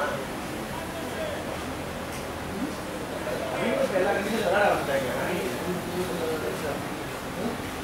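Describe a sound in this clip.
Men call out and talk across an open field, heard at a distance.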